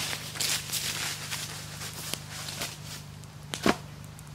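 Footsteps crunch and rustle through dry fallen leaves.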